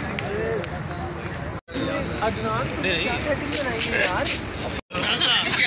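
A crowd of young people chatters and cheers loudly.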